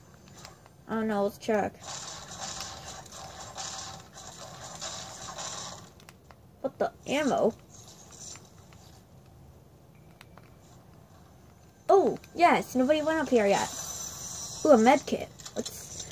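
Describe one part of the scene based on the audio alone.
A handheld game console plays game sounds through its small speaker.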